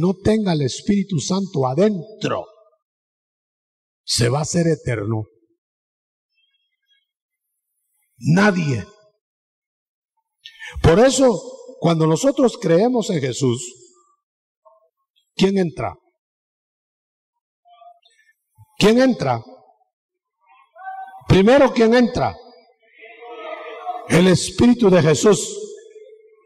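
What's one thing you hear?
A middle-aged man preaches with animation through a microphone, pausing between phrases.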